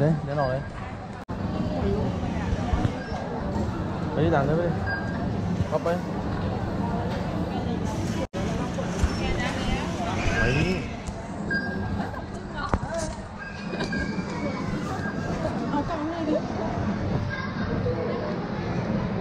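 Shoppers chatter throughout a large, echoing hall.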